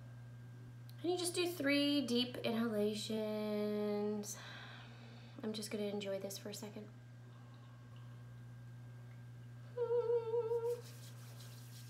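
A young woman speaks close to a microphone, in a pleading, drawn-out voice.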